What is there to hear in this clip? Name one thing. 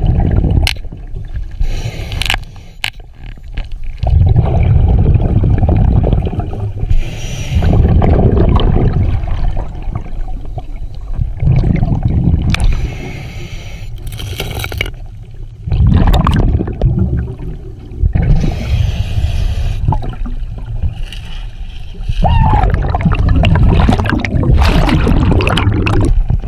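Underwater, a diver's exhaled bubbles rush out of a regulator in loud, rumbling bursts.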